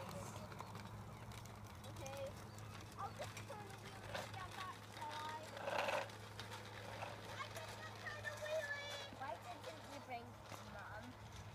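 Young children talk and call out outdoors.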